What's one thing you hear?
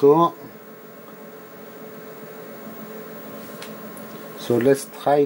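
An electronic instrument hums with a faint, steady whine.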